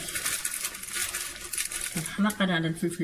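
A plastic wrapper crinkles as it is torn open and squeezed.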